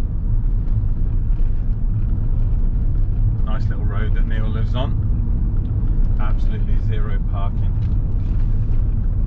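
A car engine hums low and steady as the car drives slowly.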